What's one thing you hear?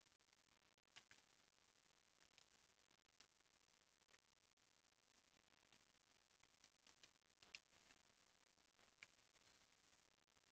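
Game menu clicks and blips sound in quick succession.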